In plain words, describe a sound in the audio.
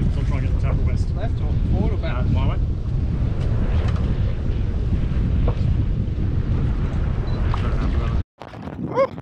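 Wind buffets loudly outdoors on open water.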